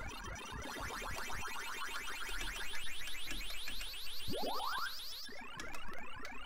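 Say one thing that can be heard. A Ms. Pac-Man arcade game plays a rising electronic siren.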